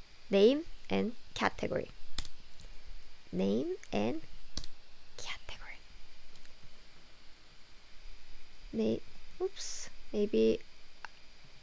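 A young woman speaks clearly and with animation close to a microphone.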